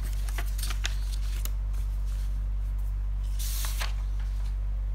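Paper rustles and slides as sheets are handled.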